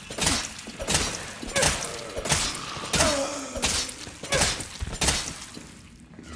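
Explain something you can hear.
Creatures tear and chew wetly at a body in loud repeated bursts.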